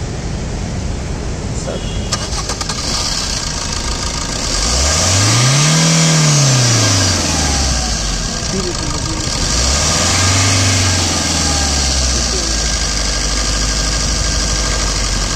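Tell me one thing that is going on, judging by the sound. A car engine idles steadily up close.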